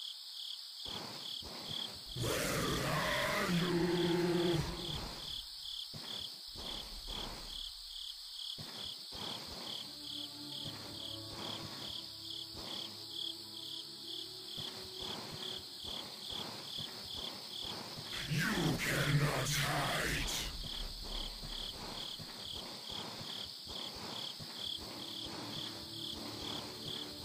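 Footsteps patter quickly and steadily.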